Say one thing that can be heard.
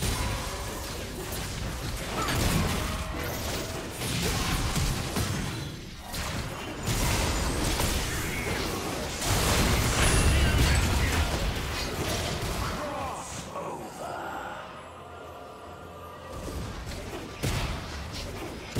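Spell blasts and weapon hits clash in a fast video game battle.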